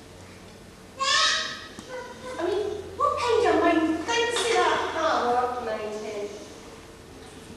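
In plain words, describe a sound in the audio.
A woman speaks with animation in a hall.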